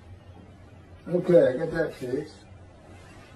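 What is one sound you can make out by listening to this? A middle-aged man speaks briefly and calmly, close by.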